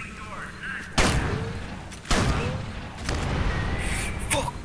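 Guns fire loud bursts of shots.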